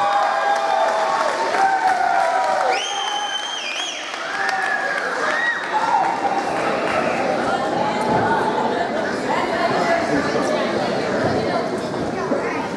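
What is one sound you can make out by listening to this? A crowd in a large echoing hall cheers and shouts.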